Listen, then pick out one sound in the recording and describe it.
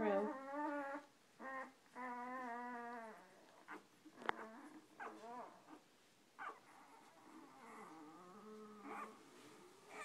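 Newborn puppies whine and squeal in high, wavering cries.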